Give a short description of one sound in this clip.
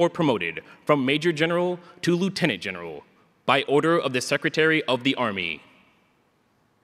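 A man announces formally over a loudspeaker in a large hall.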